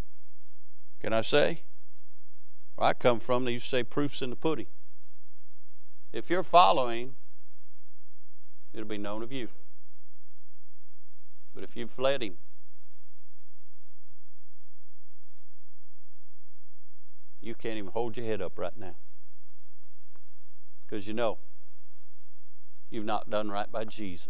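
A middle-aged man preaches through a microphone in short phrases with long pauses.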